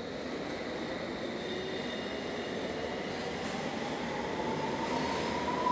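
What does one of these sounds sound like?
A train's motor whines, rising in pitch as it speeds up.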